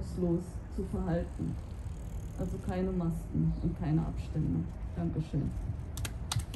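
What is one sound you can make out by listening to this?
A woman speaks calmly into a microphone close by.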